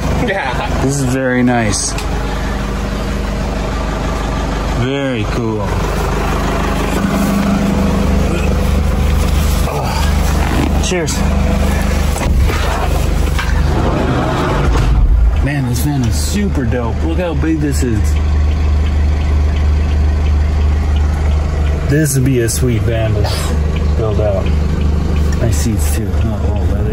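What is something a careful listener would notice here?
An engine idles with a low, steady hum.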